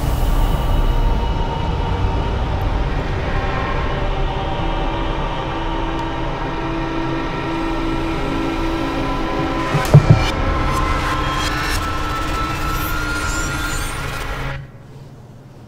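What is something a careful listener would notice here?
A low magical rumble roars steadily, with a droning hum.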